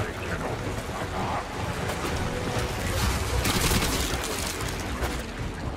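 A waterfall roars loudly nearby.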